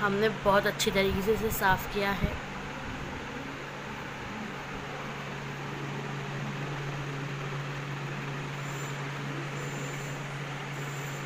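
A refrigerator hums steadily.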